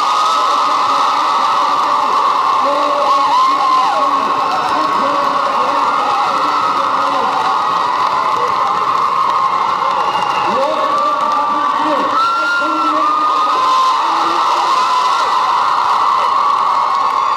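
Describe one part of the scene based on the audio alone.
A crowd of young women and men call out and chatter in a large echoing hall.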